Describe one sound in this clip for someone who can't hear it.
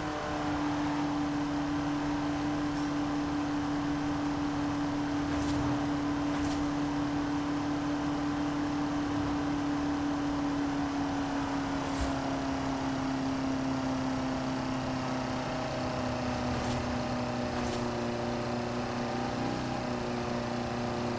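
Wind rushes past the open car.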